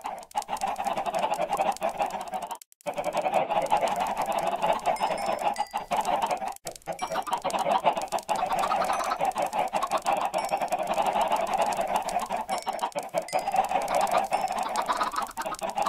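Many game chickens cluck in a dense, continuous chorus.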